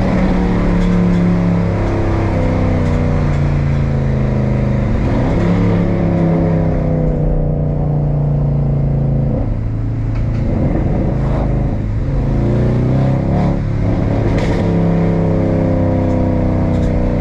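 Tyres hum on a wet road.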